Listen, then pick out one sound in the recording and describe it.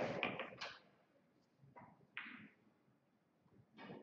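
A cue stick strikes a billiard ball with a sharp click.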